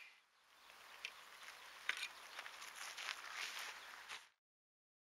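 Equipment clicks and rattles close by as it is handled.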